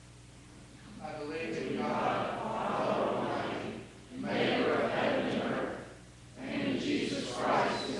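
A group of people reads aloud in unison, in loud swelling phrases with short pauses.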